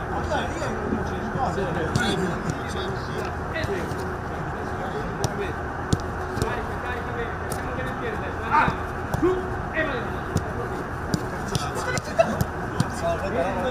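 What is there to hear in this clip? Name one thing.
Young men call out and talk outdoors.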